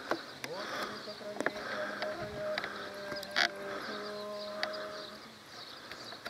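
A group of people sing a slow chant outdoors.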